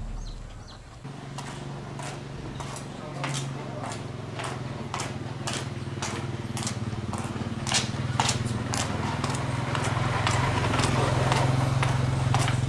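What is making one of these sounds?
Plastic buckets clatter and knock as a woman carries them.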